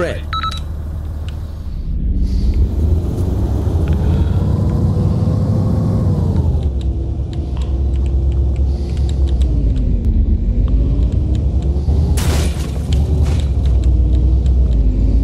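A truck's body rattles and bumps over uneven ground.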